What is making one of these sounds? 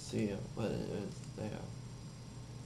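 A young man speaks calmly and close into a microphone.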